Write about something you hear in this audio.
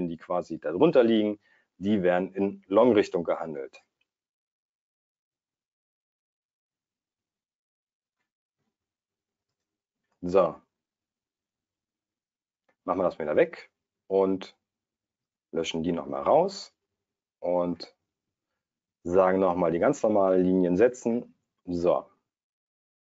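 A man talks calmly and closely into a microphone, with pauses.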